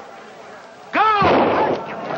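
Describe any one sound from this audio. A crowd cheers.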